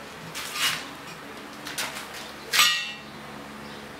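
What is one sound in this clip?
Metal clanks against metal.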